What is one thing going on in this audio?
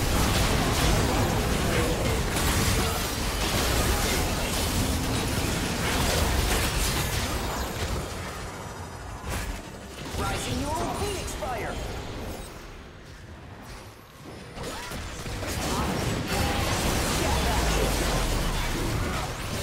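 Game spells and attacks crackle and boom in quick bursts.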